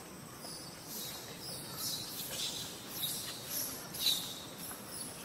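A baby monkey squeals shrilly, close by.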